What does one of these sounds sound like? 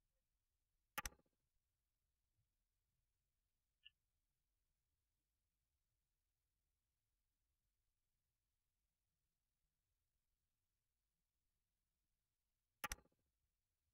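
A short soft click sounds as a cable is placed.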